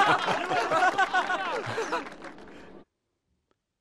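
A young man speaks cheerfully.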